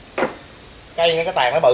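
A second man answers with animation.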